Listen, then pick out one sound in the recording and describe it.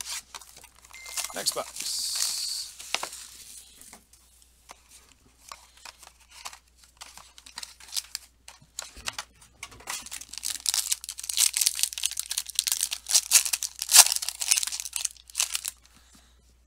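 A foil wrapper crinkles and tears in someone's hands.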